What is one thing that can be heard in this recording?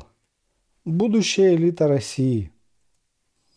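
A middle-aged man speaks calmly into a microphone, close by.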